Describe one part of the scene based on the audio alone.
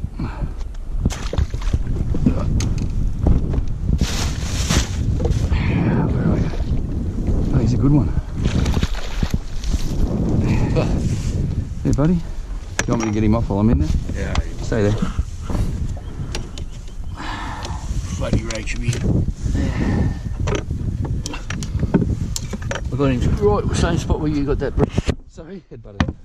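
Wind blows outdoors on open water.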